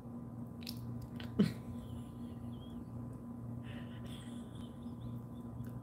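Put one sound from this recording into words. A woman bites and chews a crunchy snack.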